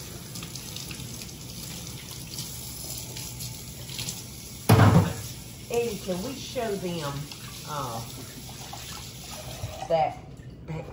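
Tap water runs into a sink and splashes over hands.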